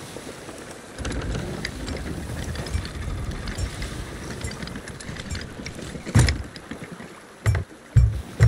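Stormy waves surge and crash against a wooden ship.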